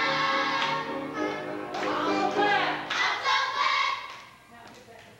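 A young girl sings through a microphone.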